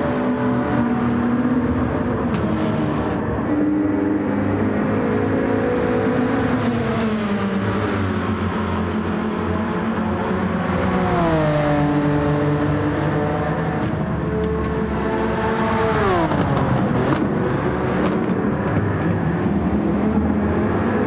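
A racing car engine roars loudly, its pitch rising and falling as it shifts gears.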